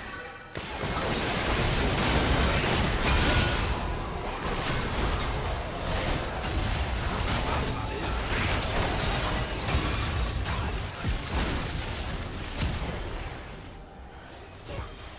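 Spell effects whoosh, crackle and burst in a video game battle.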